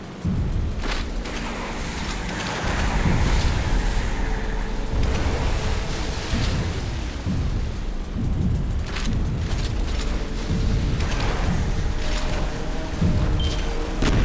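Gunfire bursts in short volleys.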